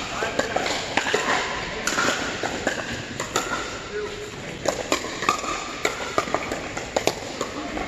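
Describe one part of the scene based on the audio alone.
Paddles pop against plastic balls again and again, echoing in a large hall.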